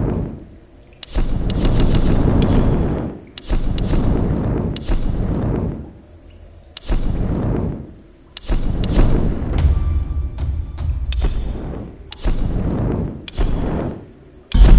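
Game menu sounds swoosh and click as selections change.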